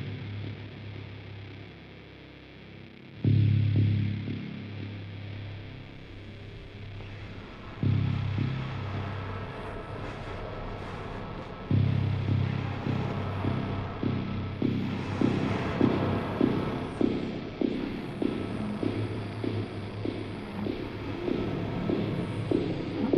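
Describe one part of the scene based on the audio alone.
An electric guitar plays loud, low notes that swell and then settle into a steady pulsing rhythm.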